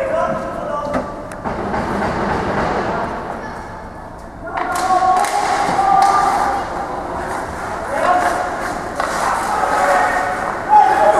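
Hockey sticks clack sharply against the puck and ice.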